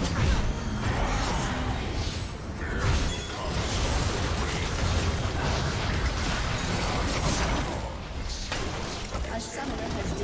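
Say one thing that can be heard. Video game spell and combat effects crash and whoosh during a team fight.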